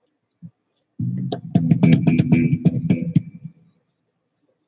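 An electric guitar is strummed.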